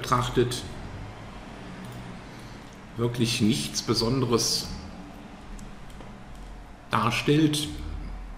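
A man speaks calmly into a microphone, close up.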